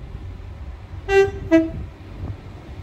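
A train sounds its horn twice as it approaches.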